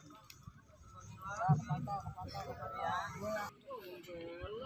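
Men talk to each other outdoors at a distance.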